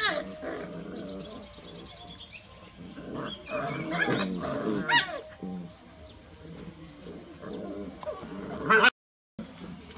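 A puppy scratches and digs in loose sand.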